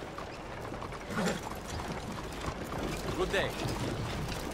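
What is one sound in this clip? A horse's hooves clop on a street.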